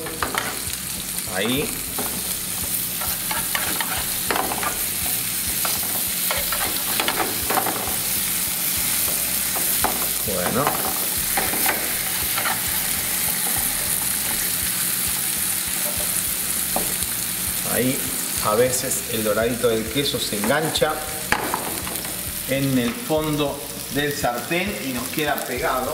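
Food sizzles steadily in hot oil in a frying pan.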